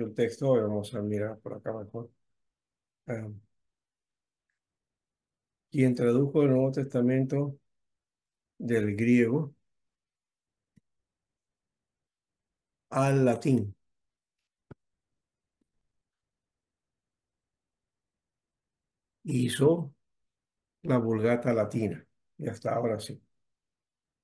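A man speaks calmly in short phrases over an online call, with pauses between them.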